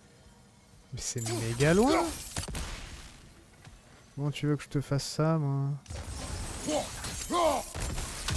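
A thrown axe whooshes through the air.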